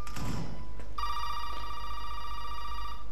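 A telephone gives a steady tone as its keys are pressed.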